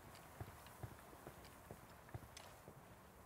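A horse's hooves thud steadily on the ground.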